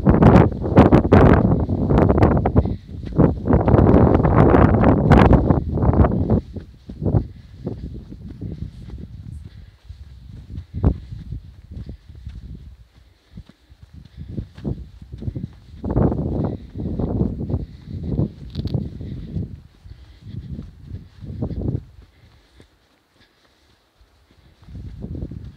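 Wind gusts and rumbles loudly outdoors.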